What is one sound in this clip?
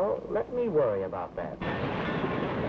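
An elderly man speaks.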